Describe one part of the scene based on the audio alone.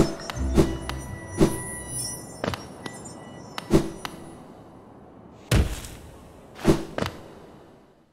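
Small footsteps patter and land with soft thuds.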